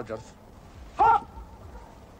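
A man calls out a short greeting.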